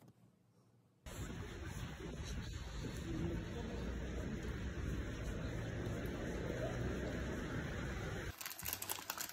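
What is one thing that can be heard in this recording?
Rain pours down steadily on pavement outdoors.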